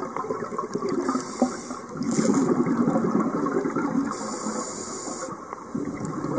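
A diver breathes out through a regulator underwater, releasing a rush of bubbles.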